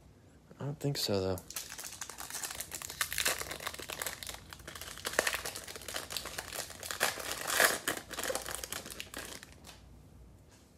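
A foil wrapper crinkles and tears as it is pulled open.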